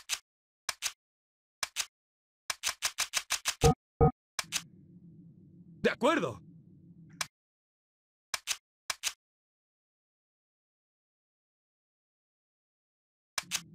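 Short menu clicks and beeps sound in quick succession.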